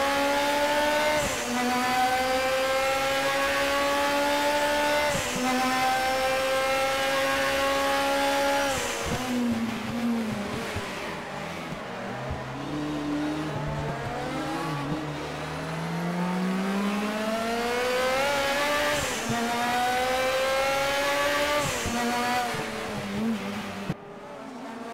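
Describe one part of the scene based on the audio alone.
A race car engine roars loudly, rising in pitch through each gear and dropping sharply at every gear change.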